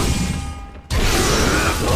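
A heavy impact crashes loudly.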